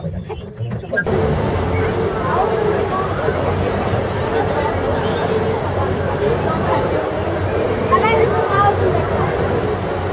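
A crowd chatters in the distance outdoors.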